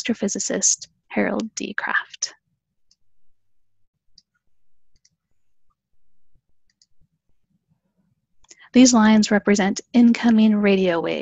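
A middle-aged woman speaks calmly through a headset microphone, as on an online call.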